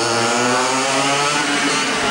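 Small engines whine and rev up and down as go-karts race closer.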